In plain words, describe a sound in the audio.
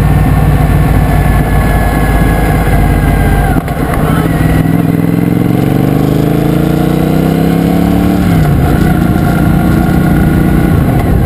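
A motorcycle engine runs loudly and revs up as the bike rides along.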